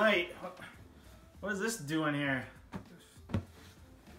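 Bedsheets rustle as a man moves in bed.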